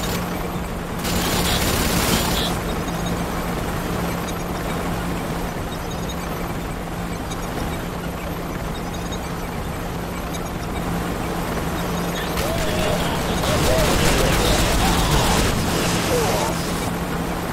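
Energy weapons fire in loud crackling bursts.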